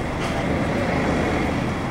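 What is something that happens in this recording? A truck engine rumbles nearby.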